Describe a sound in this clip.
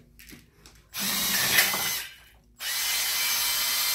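A power drill whirs in short bursts.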